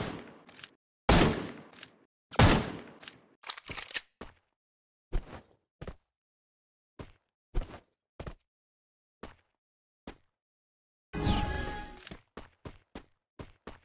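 Footsteps of a game character run across grass.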